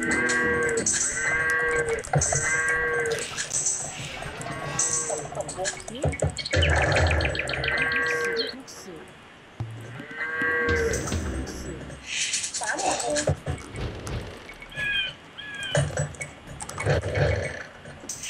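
Villagers in a strategy game hammer, chop and work the fields.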